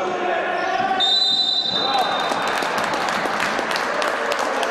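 Basketball shoes squeak sharply on a hard court.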